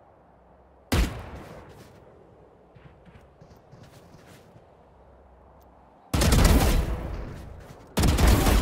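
A rifle fires in short, rapid bursts.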